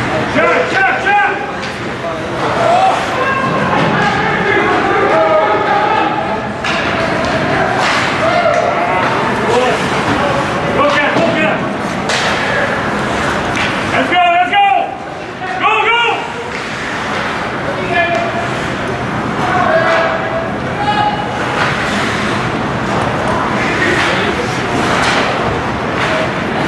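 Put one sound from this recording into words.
Spectators in a large echoing arena chatter and call out.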